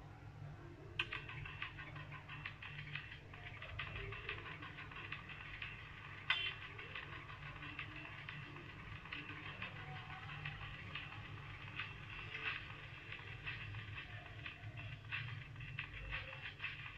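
Quick game footsteps patter from a small tablet speaker.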